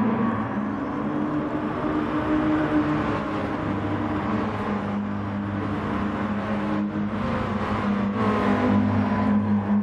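Other race cars roar past close by.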